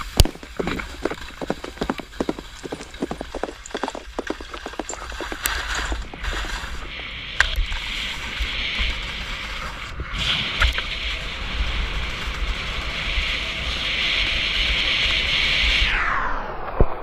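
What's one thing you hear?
Skis scrape and hiss over snow.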